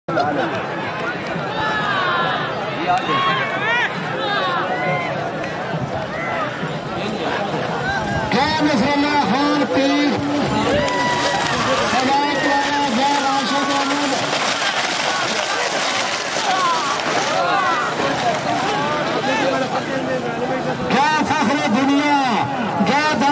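A large outdoor crowd of men shouts and cheers loudly.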